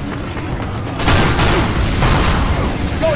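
Gunshots blast loudly.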